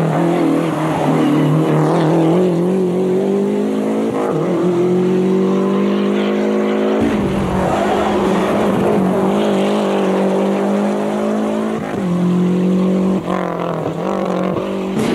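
A rally car engine roars loudly as the car speeds past.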